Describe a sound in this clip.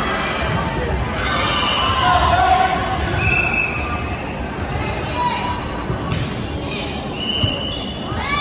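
Young girls call out to one another with animation.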